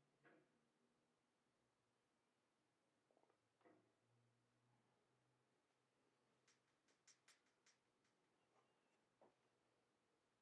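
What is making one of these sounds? A man speaks briefly and quietly close to a microphone.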